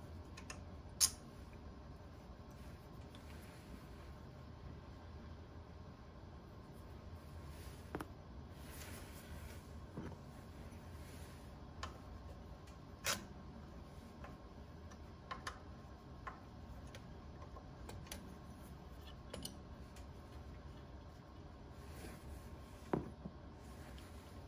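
Metal parts click and tap.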